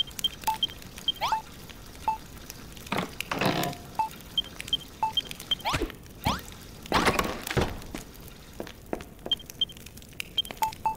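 Short electronic game bleeps chime repeatedly.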